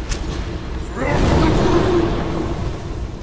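A dragon roars loudly.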